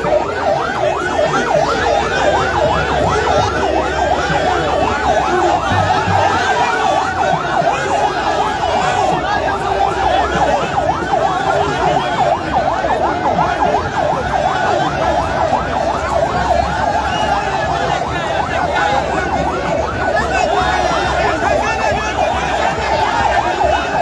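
A large crowd cheers and chants loudly outdoors, close by.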